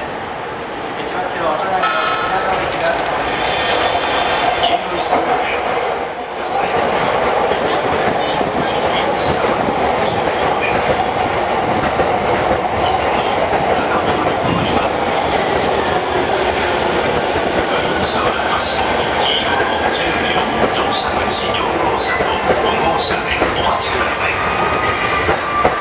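An electric commuter train rolls into a station.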